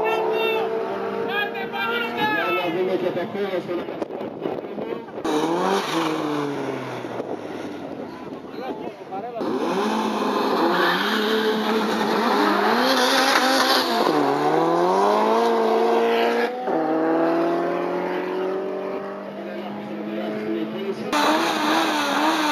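A racing car engine roars and revs hard, rising and falling in pitch.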